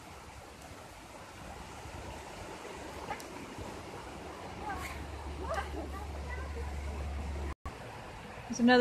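A stream trickles and splashes nearby.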